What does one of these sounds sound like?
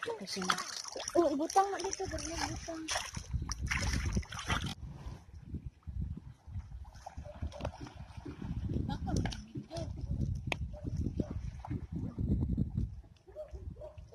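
Water splashes and laps as people move in it.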